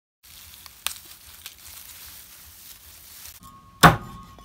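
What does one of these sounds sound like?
Dry grass rustles as hands push through it.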